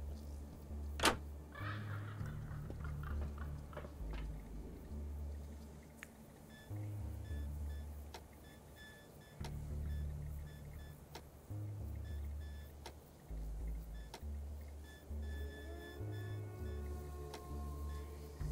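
Soft interface clicks sound now and then.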